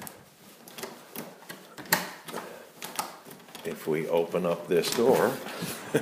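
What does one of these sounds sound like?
A doorknob rattles and clicks as it turns.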